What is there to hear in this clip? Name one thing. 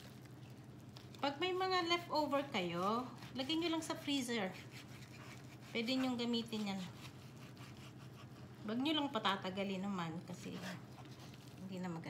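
A knife cuts through meat on a wooden cutting board.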